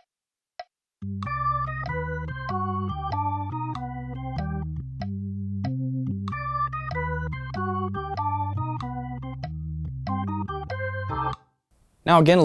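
An electric keyboard plays a bright chord melody over a low bass line.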